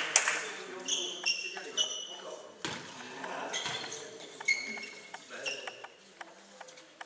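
Sneakers squeak sharply on the hall floor.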